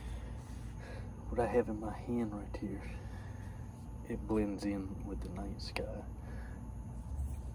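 A hand fumbles and rubs close to the microphone.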